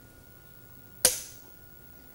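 A wooden game piece clacks down sharply on a board.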